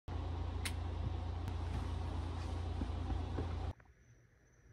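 An air conditioner hums steadily nearby.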